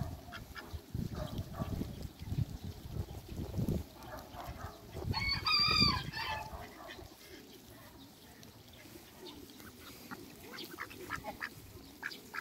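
Ducks peck and rustle in the grass.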